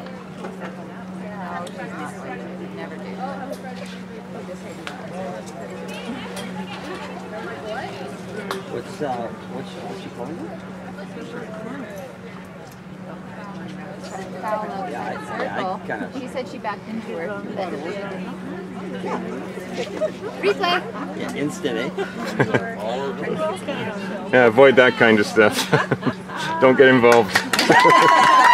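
Young women chat and talk together nearby.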